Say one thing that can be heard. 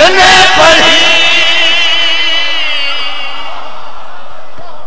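A man sings a long, wavering lament loudly through a microphone, with reverberation.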